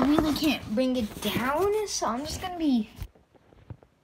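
A young boy talks loudly and with animation, close by.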